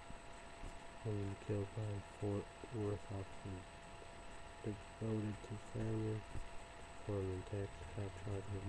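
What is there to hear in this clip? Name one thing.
A young man speaks quietly and calmly into a nearby microphone.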